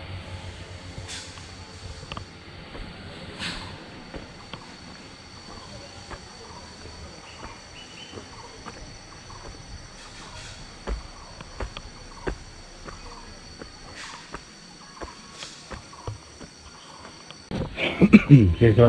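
Insects buzz steadily outdoors.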